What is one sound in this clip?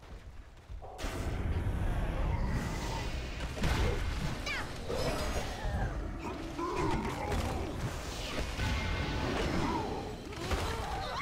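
Magic blasts crackle and boom in a loud fight.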